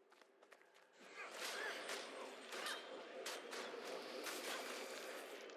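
A magic blast bursts with a loud rushing whoosh.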